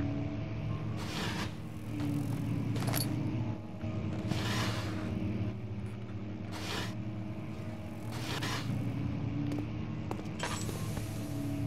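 Slow footsteps tread on a hard floor.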